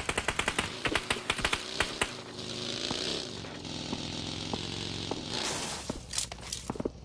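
A vehicle engine hums and revs.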